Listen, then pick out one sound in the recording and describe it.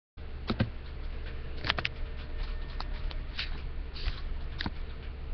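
Video game music plays quietly from a television speaker.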